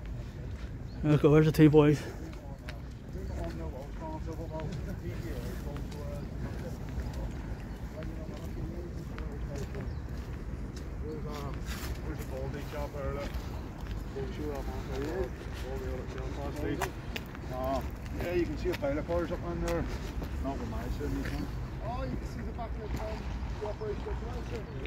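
A young man talks casually nearby outdoors.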